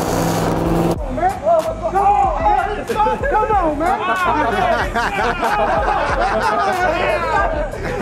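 Several men talk and shout excitedly close by.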